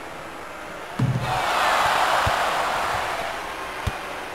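A crowd cheers loudly, then fades.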